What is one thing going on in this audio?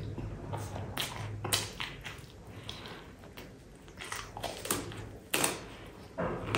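A young man bites into crunchy fried food.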